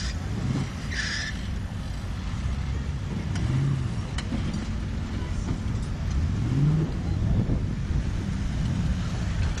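An off-road vehicle's engine rumbles and revs nearby outdoors.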